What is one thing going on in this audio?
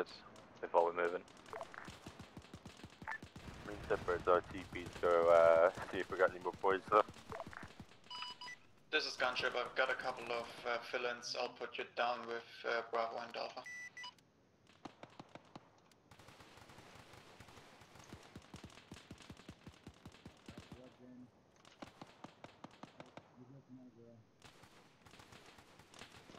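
Footsteps tread steadily on gravel.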